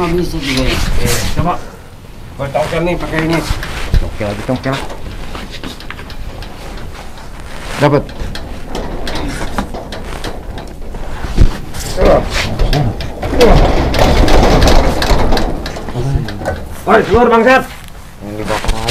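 Young men talk with each other nearby.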